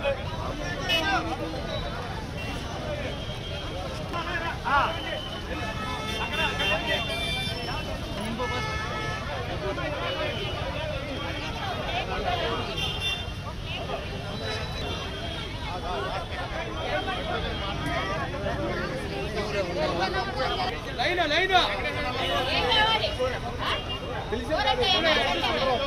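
A crowd of men and women chatter loudly all around outdoors.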